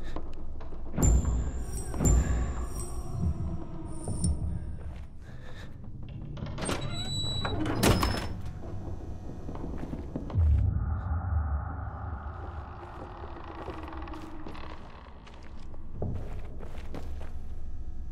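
Footsteps thud slowly across a hard floor.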